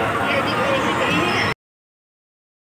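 A crowd of people chatters and shouts nearby.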